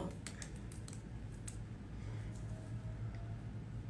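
Hands rub softly against skin and hair.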